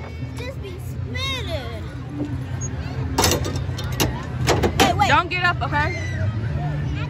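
Arcade machines hum and jingle steadily in the background.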